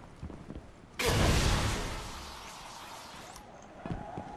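A heavy door slides open with a whoosh.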